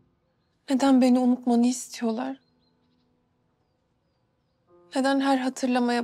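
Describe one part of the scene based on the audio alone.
A young woman speaks in a soft, upset voice close by.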